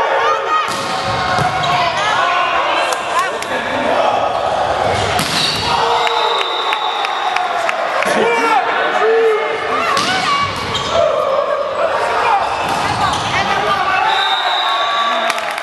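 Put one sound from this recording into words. Players shout and call to each other in a large echoing hall.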